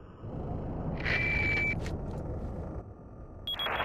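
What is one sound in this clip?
A handheld radio beeps and crackles.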